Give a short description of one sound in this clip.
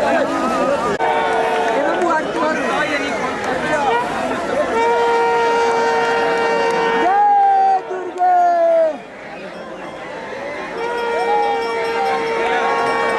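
A large crowd cheers and shouts with excitement outdoors.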